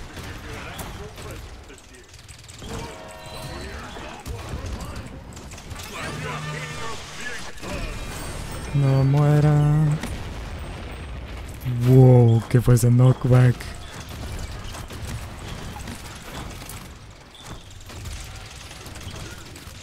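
Weapons fire in rapid bursts with sharp impacts.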